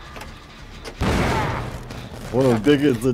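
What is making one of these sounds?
A machine bursts with a loud crackling bang.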